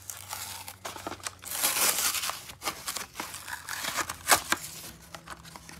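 Cardboard tears and rips close by.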